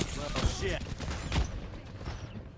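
Game gunfire and explosions crackle loudly.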